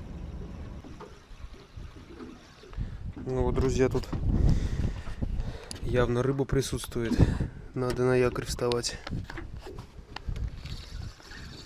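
Small waves lap against a boat's hull.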